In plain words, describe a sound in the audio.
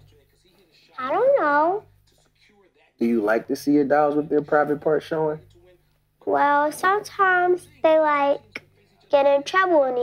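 A young girl speaks softly close by.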